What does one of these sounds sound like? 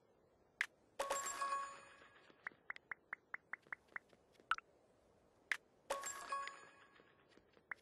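A bright game chime rings out with a shimmering tail.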